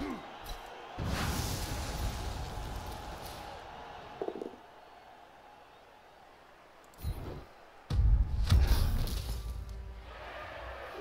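Game sound effects crash and rumble.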